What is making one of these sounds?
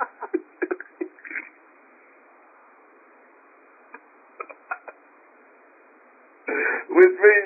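A woman speaks with feeling over a phone line, in short bursts with pauses.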